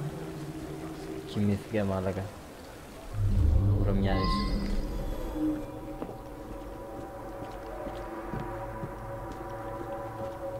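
Footsteps crunch on hard ground at a walking pace.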